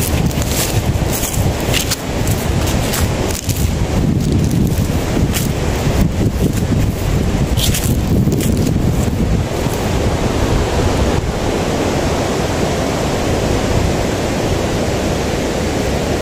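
Wind blows steadily outdoors, rustling leaves.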